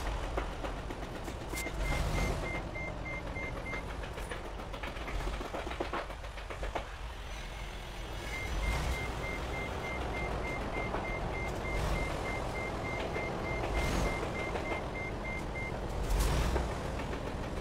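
A truck engine idles with a low rumble.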